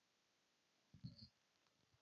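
Paper rustles as a man flips pages.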